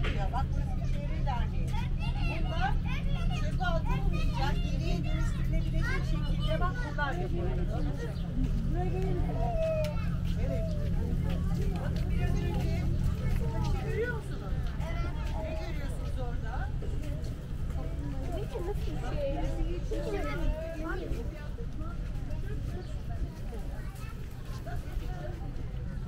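A crowd of children and adults chatter nearby outdoors.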